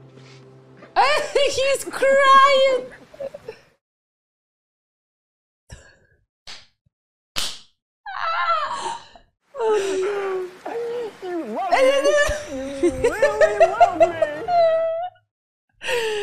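A young woman laughs loudly close to a microphone.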